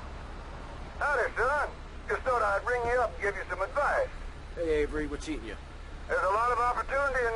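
A man speaks calmly over a phone.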